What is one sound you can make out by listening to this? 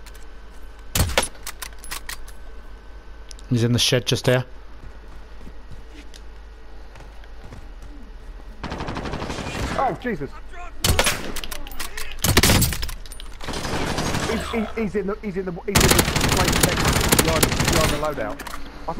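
Loud rifle shots crack out several times, with short echoing tails.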